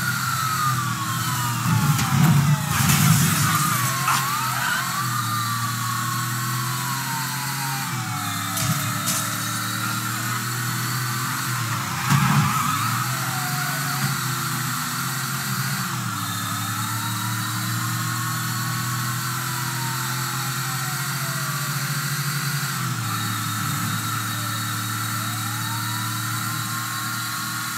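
A car engine roars steadily and shifts gears as the car speeds along.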